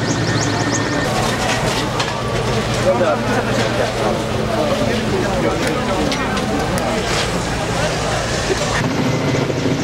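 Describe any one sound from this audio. A crowd of men murmur and talk outdoors.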